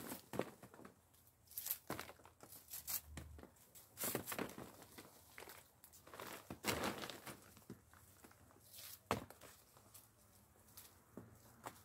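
Leafy branches rustle and shake as fruit is stripped off.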